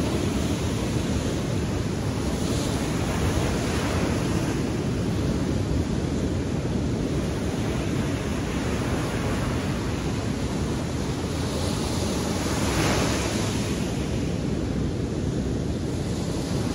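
Wind blows strongly into the microphone outdoors.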